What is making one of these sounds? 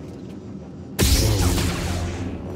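A lightsaber ignites with a loud crackling hum.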